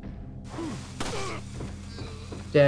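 A pistol shot cracks and echoes outdoors.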